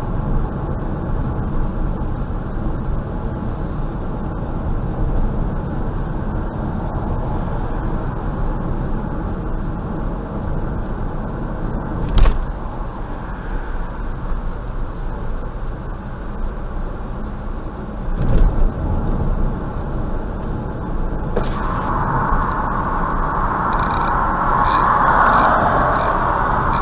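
A car's engine and tyres rumble steadily on the road from inside the car.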